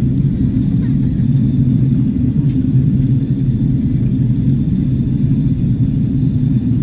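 Jet engines roar steadily with a deep, constant rumble inside an airliner cabin.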